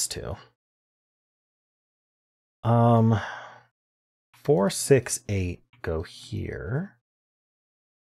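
A man talks calmly and closely into a microphone, in short bursts.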